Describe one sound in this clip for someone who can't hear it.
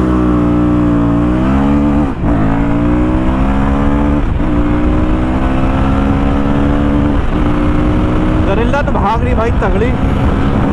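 A motorcycle engine roars close by, climbing in pitch and dipping briefly at each gear change.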